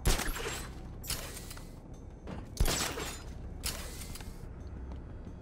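Loud whooshing bursts rush past as a figure swings and lands.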